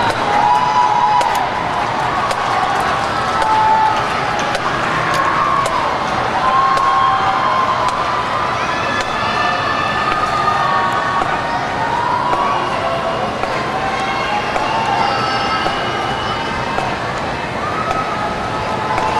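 A marching band's brass plays sustained chords across a large open stadium.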